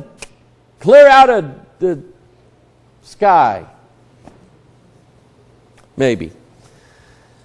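A middle-aged man preaches with animation through a microphone, in short bursts with pauses.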